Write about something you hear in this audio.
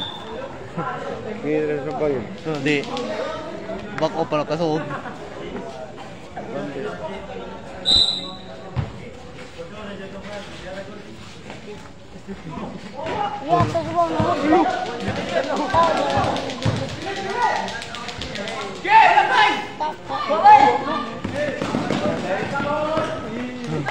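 Young men shout and call out to each other across an outdoor court.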